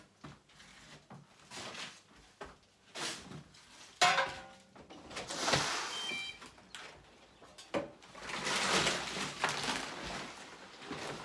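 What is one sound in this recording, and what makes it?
Rubble scrapes and rattles on a metal shovel.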